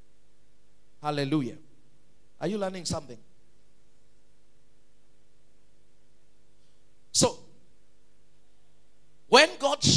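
A man preaches with animation into a microphone, in short bursts with pauses.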